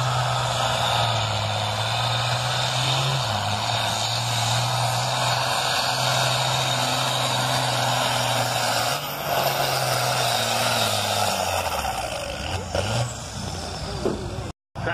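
A tractor's diesel engine roars loudly and steadily, rising and falling in pitch.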